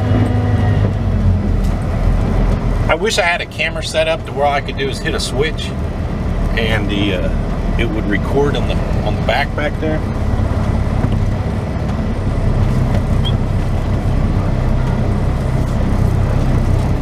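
A diesel semi-truck engine idles.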